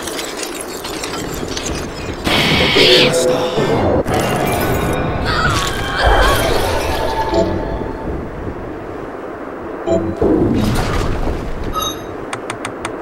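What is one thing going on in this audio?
Magical blasts burst and roar loudly.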